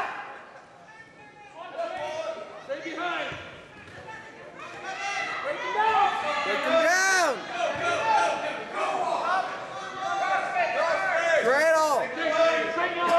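Wrestlers thud and scuffle on a mat.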